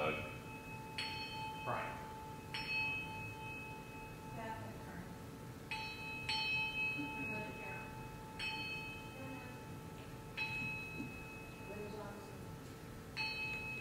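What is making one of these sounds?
A small hand bell rings repeatedly, each chime ringing on and fading.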